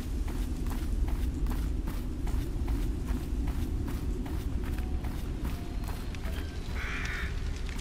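Footsteps crunch and swish through tall grass.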